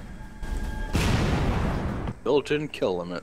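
A fiery blast bursts with a loud roar.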